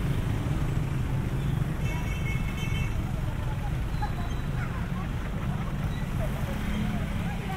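Motorbikes and tricycles rumble past along a busy road.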